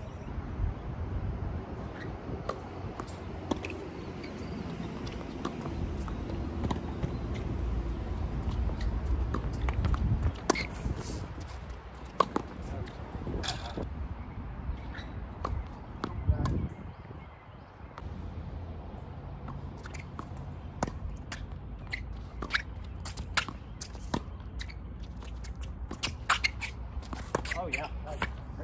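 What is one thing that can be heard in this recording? Tennis balls are struck with rackets, with sharp pops.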